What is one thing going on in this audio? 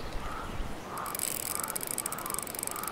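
A fishing reel whirs as line is reeled in.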